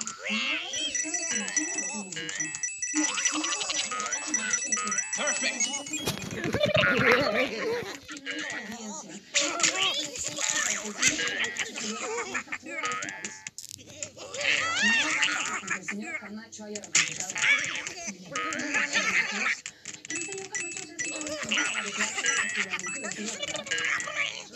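Coins chime quickly one after another as they are collected.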